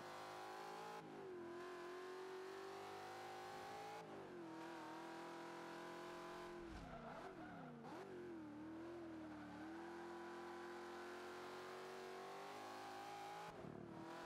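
A car engine roars at high revs, briefly dropping at each gear change.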